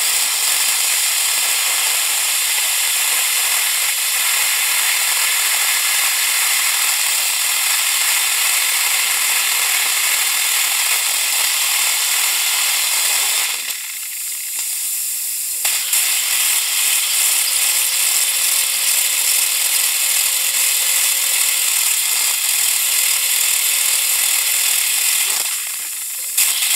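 A dental drill whines steadily at a high pitch, stopping briefly twice.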